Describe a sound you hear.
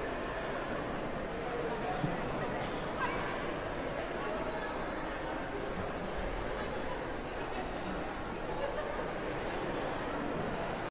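A piano plays softly in a large room.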